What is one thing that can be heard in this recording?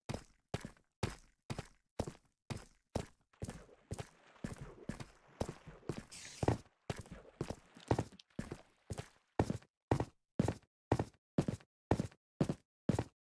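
Footsteps thud steadily on stone, echoing in a narrow tunnel.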